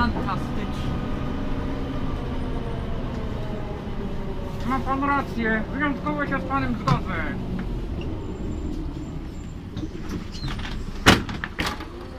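A bus engine rumbles steadily while the bus drives along.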